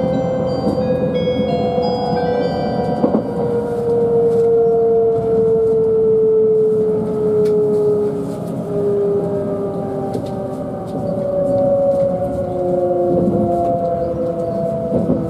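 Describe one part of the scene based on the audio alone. A train's electric motor hums with a slowly falling whine.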